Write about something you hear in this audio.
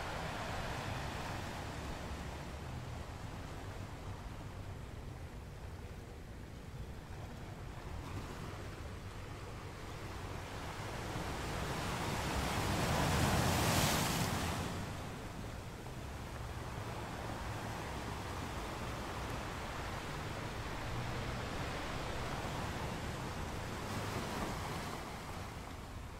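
Ocean waves crash and rumble against rocks.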